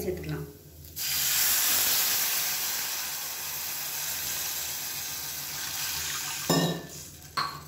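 Water pours steadily into a metal pot.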